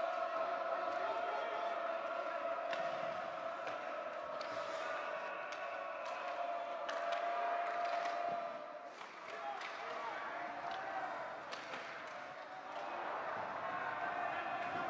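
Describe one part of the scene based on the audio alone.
Skates scrape and carve across the ice.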